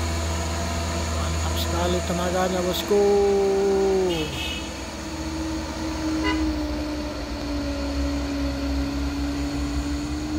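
A heavy truck engine labours as the truck climbs a hill.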